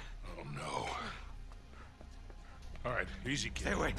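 A young man speaks in a strained, pained voice.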